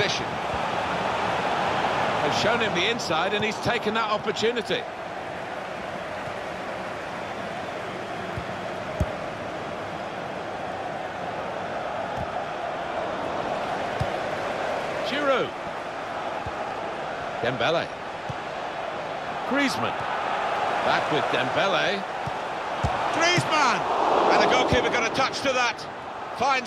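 A large stadium crowd roars and murmurs.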